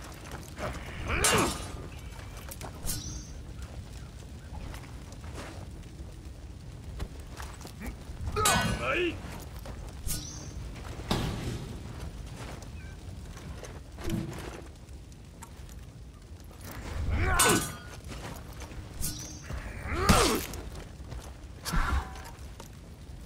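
Heavy weapons clash and thud in a fight.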